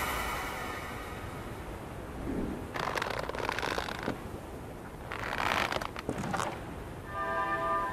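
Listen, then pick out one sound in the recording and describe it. Waves wash softly against a rocky shore.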